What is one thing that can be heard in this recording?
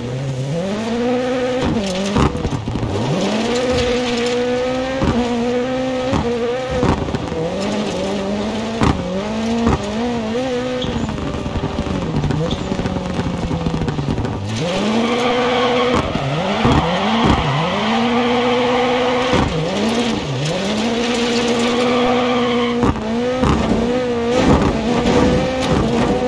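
A rally car engine revs hard and rises and falls in pitch as the gears change.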